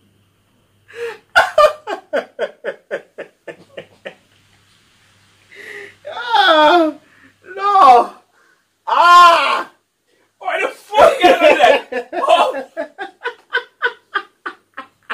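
A young man laughs hard in rapid bursts, close by.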